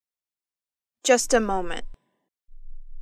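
A girl speaks briefly and calmly.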